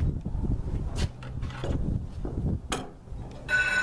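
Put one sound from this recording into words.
Wood knocks as something is set on a bench.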